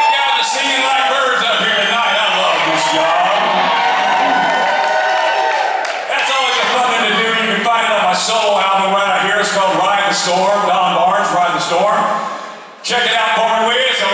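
A man sings into a microphone through loudspeakers.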